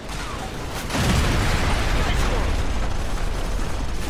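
A heavy explosion booms and rumbles.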